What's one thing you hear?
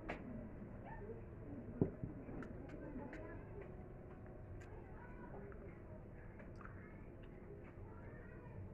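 A woman chews food close to the microphone.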